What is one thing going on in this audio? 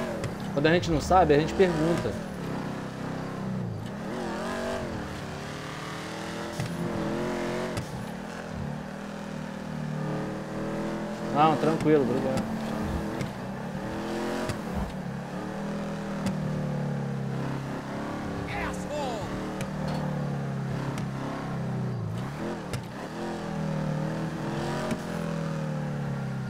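A car engine revs and roars steadily as a car drives fast.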